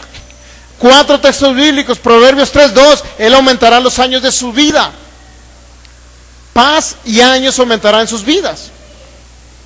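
A man speaks with animation through a microphone and loudspeakers in an echoing room.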